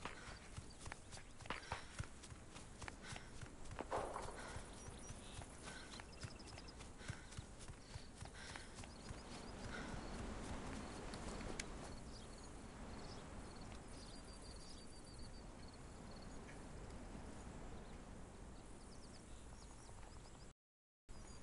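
Footsteps crunch on dry gravel and dirt.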